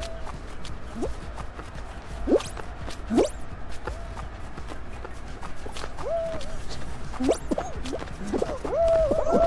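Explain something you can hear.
Springy cartoon sound effects play as a small character jumps.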